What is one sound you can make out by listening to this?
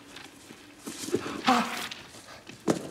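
A man cries out in pain, close by.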